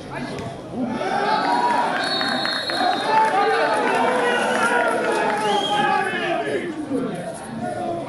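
Young men shout across an outdoor pitch.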